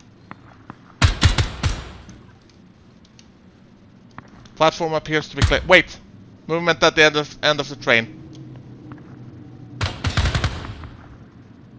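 A rifle fires short bursts of loud, echoing shots.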